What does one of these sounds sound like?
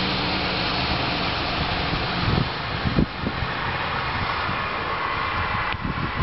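A fire truck's engine rumbles as the truck drives slowly along a street.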